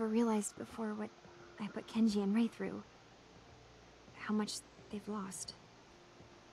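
A young woman speaks calmly, close by.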